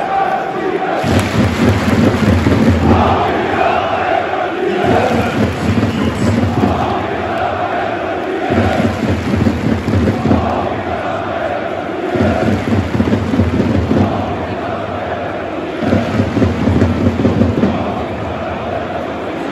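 A crowd of fans claps in rhythm.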